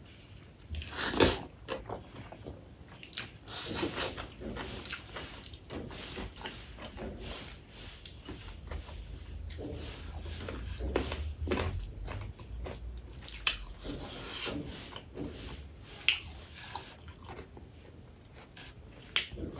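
A man chews food loudly and wetly, close to a microphone.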